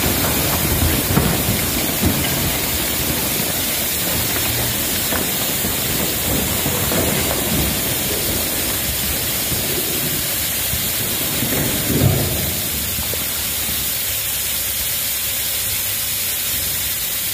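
A high-pressure water jet hisses and sprays steadily onto soil.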